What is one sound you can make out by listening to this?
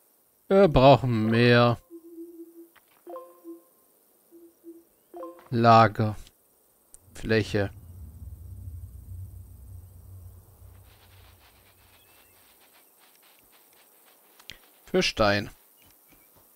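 Short game chimes ring out as blocks are placed.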